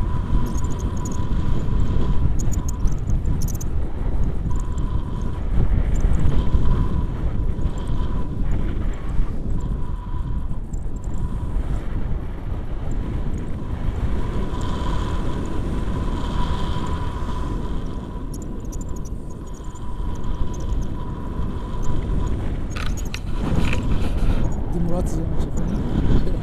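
Strong wind rushes and buffets loudly, close up outdoors.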